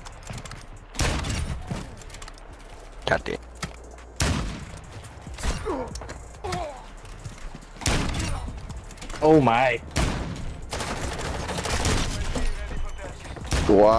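Rifle shots ring out in sharp bursts.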